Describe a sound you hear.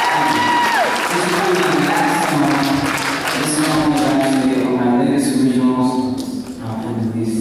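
A young man sings slowly into a microphone.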